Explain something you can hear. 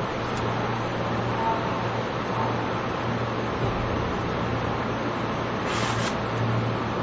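A stopped electric train hums steadily close by.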